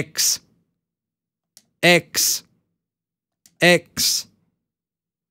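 A man speaks in short bursts close to a microphone.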